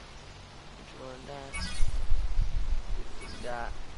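A video game menu plays short chiming tones.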